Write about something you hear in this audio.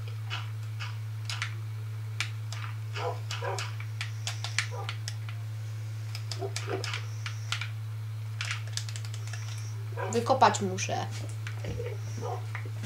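Video game digging sounds crunch in short bursts from a television's speakers.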